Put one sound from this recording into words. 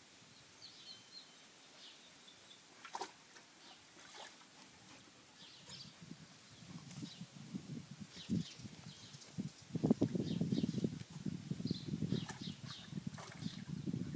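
A dog shuffles and scratches about inside a wooden tub.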